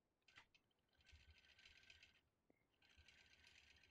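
A quilting machine hums and stitches with a rapid whirring.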